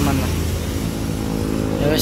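Traffic passes by on a nearby road.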